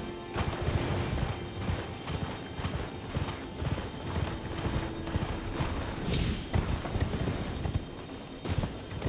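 Horse hooves thud rhythmically on grass and rock.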